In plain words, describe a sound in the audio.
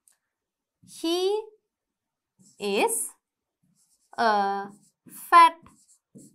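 A woman speaks clearly in short, drawn-out words close to a microphone.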